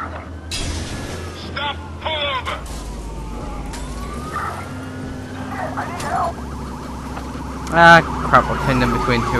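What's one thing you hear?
Cars crash and scrape against each other.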